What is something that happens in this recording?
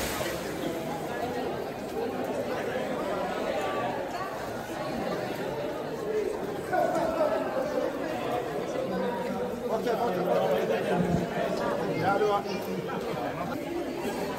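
Water splashes as swimmers paddle about.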